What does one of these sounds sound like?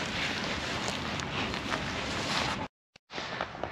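Wind buffets a tent's fabric outdoors.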